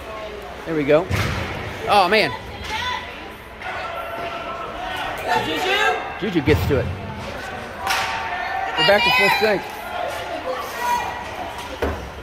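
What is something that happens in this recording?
Young men shout to one another across an echoing rink.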